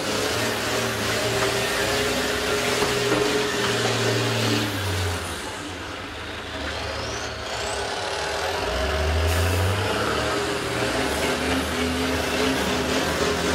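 Bus engines roar and rumble loudly.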